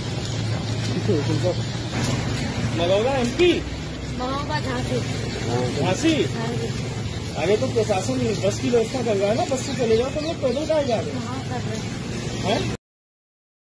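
A woman speaks close by, with emotion.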